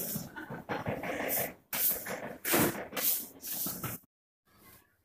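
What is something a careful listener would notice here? A scraper rasps against a wall in quick strokes.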